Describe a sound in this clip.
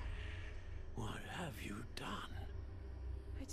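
An elderly man speaks calmly and closely.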